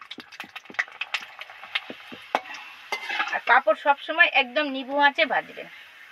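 A metal slotted spoon scrapes against a wok.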